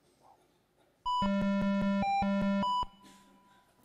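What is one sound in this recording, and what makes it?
A quick run of electronic beeps plays.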